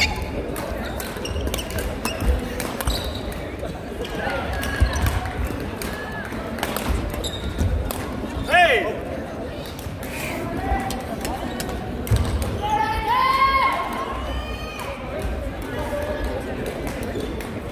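Shuttlecocks are hit with sharp pops of rackets.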